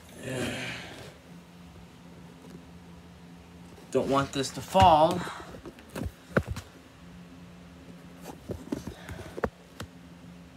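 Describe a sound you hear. A hand taps and brushes against a shoe on the floor.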